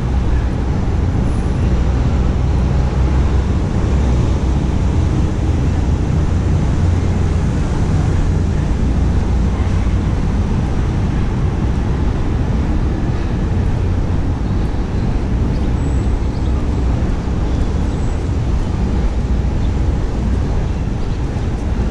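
Distant city traffic rumbles steadily outdoors.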